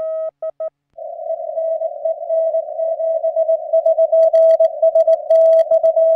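A radio hisses with a faint incoming Morse signal.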